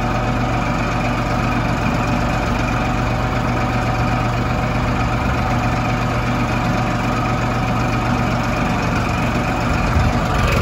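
A plough scrapes and churns through dry soil.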